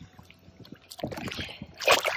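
A fish splashes in water.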